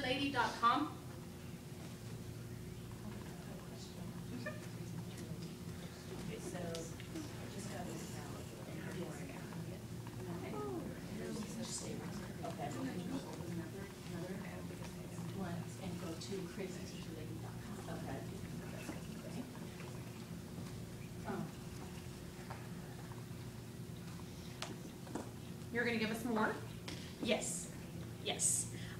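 A woman talks calmly to a small group, heard from a distance.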